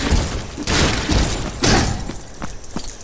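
A crate smashes apart with a loud crash.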